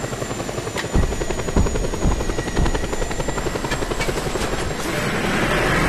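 A helicopter's rotor thumps and whirs steadily.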